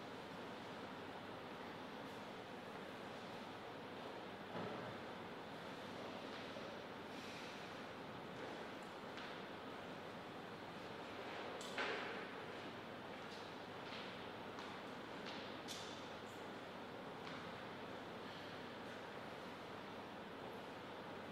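Footsteps tap lightly on a hard floor.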